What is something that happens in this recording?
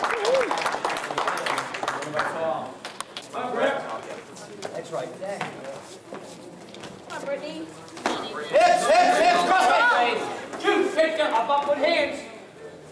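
Spectators shout in an echoing hall.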